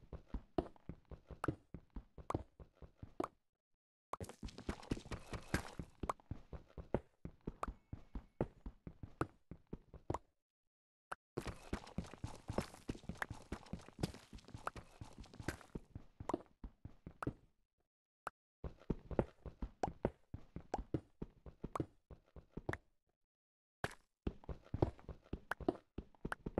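A pickaxe digs rapidly into stone with quick, repeated clicking knocks.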